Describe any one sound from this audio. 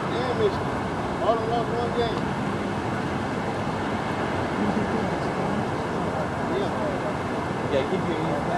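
A man speaks loudly into a microphone outdoors.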